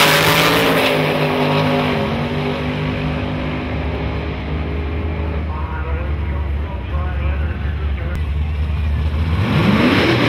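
A race car engine fades into the distance.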